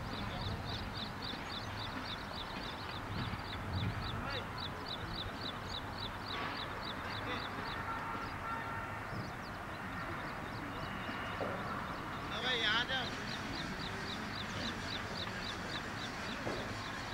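Men talk and call out in the distance, outdoors.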